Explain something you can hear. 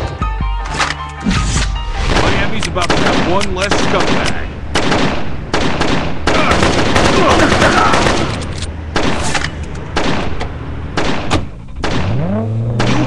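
Gunfire from a phone game pops rapidly through a small speaker.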